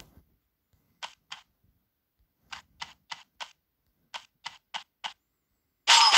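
Arrows whoosh as they are fired in quick bursts.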